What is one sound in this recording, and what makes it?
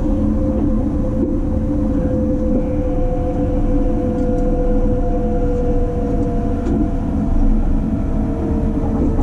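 A train rumbles steadily along the rails at speed, with a constant low roar and a steady whine.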